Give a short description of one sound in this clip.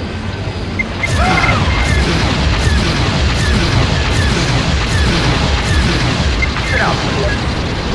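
Laser cannons fire in quick bursts.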